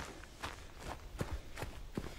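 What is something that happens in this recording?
Footsteps tap on wet brick paving.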